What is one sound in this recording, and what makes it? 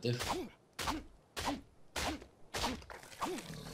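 A stone hatchet chops repeatedly into a carcass with wet thuds.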